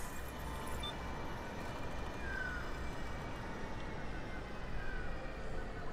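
A spaceship roars past overhead.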